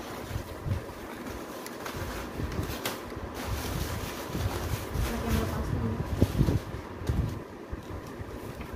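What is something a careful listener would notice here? Paper packing crinkles and rustles.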